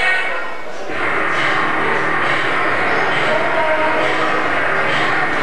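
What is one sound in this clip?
A man speaks into a microphone, heard through loudspeakers in an echoing hall.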